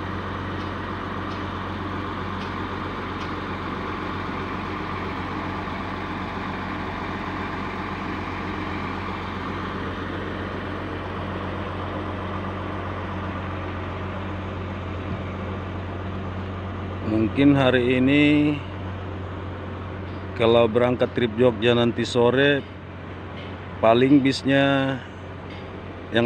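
A bus engine idles nearby with a steady low rumble.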